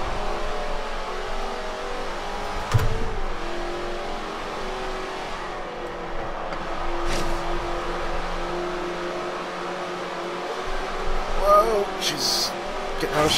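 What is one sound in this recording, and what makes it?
A racing car engine roars steadily, shifting pitch as it speeds up and slows.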